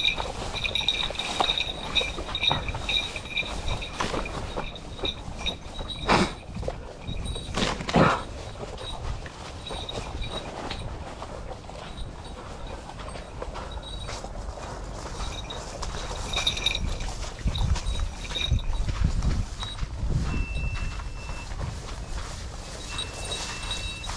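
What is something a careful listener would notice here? Wind rustles grass and leaves and buffets the microphone outdoors.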